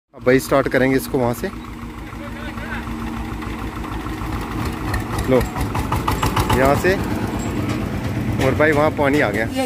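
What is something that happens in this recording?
A tractor engine chugs and rattles steadily nearby.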